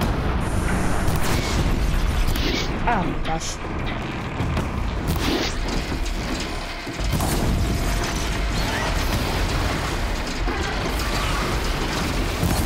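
Explosions burst with loud crackling.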